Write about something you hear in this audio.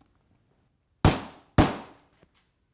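A hammer strikes a nail with sharp knocks.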